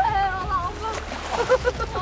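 A fish splashes hard in water.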